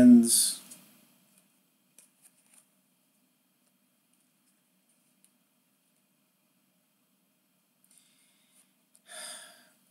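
Trading cards softly slide and rustle against each other in hands.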